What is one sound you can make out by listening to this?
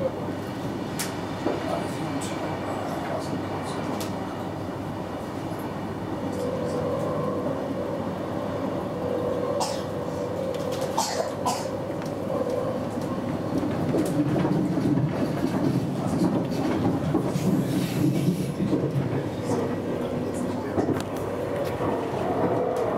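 Train wheels click and clatter over rail joints and points.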